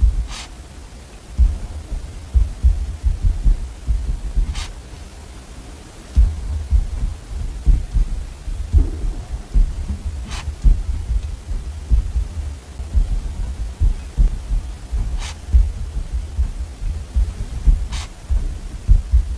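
A pen scratches and taps softly on paper.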